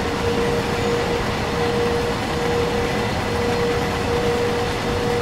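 A freight train rumbles steadily along the rails.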